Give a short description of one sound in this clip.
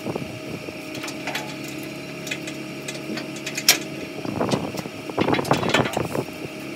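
Metal clanks and rattles close by.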